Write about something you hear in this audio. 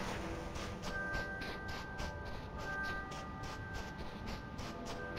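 Light footsteps patter quickly across soft sand.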